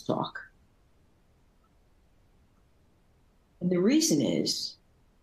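An older woman speaks calmly through a microphone in an online call.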